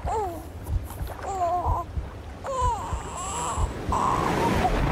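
A young woman calls out close by.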